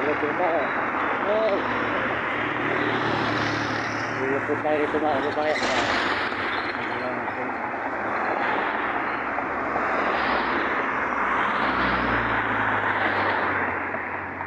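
Wind rushes loudly past from a moving vehicle.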